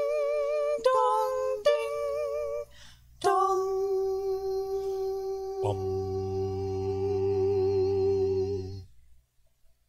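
A small group of men and women sing together in a reverberant hall.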